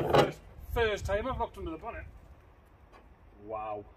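A car bonnet creaks open.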